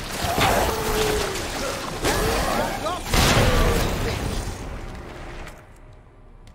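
A young man shouts with animation into a close microphone.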